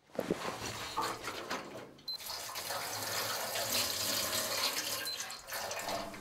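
Metal scrapes and clanks close by.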